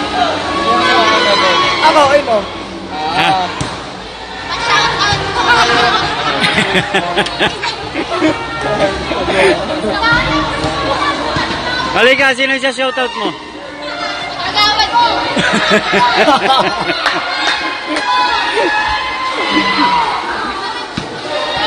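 Children shout and chatter excitedly in a large echoing hall.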